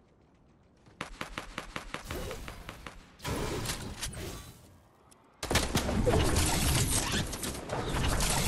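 Building pieces clatter and snap into place in rapid bursts.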